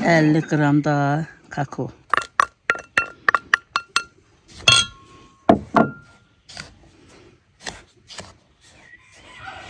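A spoon clinks and scrapes against a glass bowl.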